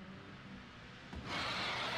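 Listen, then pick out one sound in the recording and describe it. A huge beast growls low and deep.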